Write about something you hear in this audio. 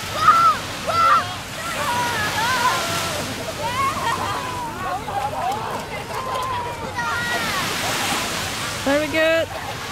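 Small waves wash onto a sandy shore.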